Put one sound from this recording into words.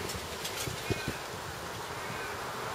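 A bird chirps softly nearby.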